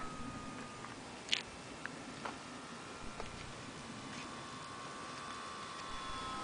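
A small plane drones in the distance, slowly growing closer.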